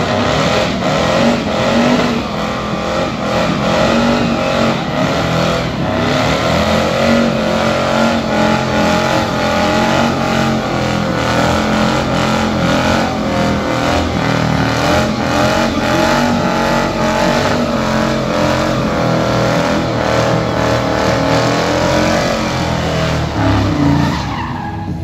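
A car engine roars at high revs close by.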